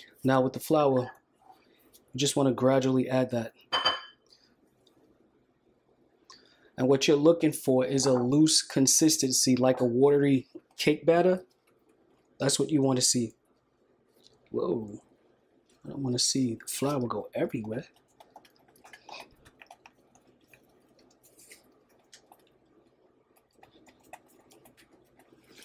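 A whisk scrapes and taps against a bowl.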